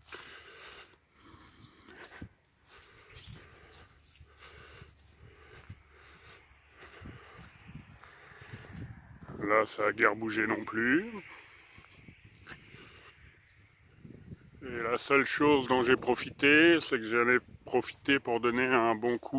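Footsteps squelch on a muddy path.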